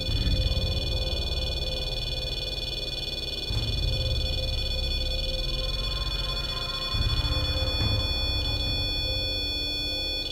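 An electrical machine whines thinly and steadily.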